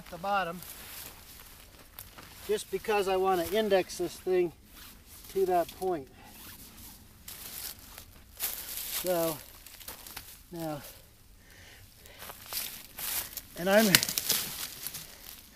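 Dry leaves crunch underfoot as a man walks.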